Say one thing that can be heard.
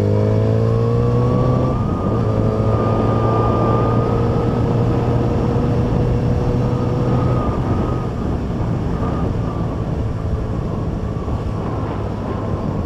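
A motorcycle engine hums steadily as the bike rides along.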